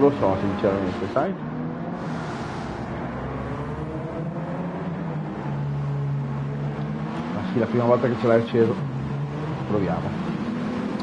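Car engines drone steadily as racing cars speed along.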